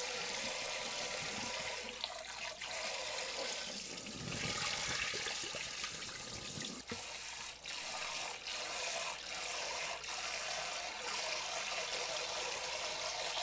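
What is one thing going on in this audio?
A hand swishes and rubs rice in a bowl of water.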